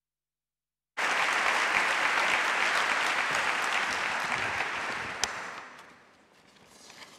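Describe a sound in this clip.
An audience applauds loudly, then the clapping fades.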